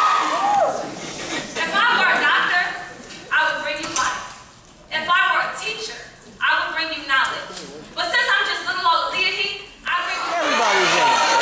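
A young woman speaks calmly into a microphone, amplified through loudspeakers in a large hall.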